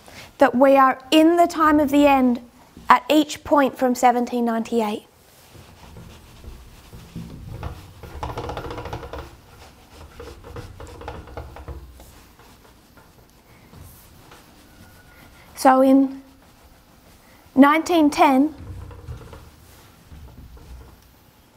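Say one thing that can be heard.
A cloth rubs and squeaks across a whiteboard.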